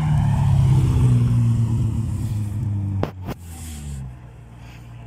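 A sports car engine rumbles deeply as the car drives away.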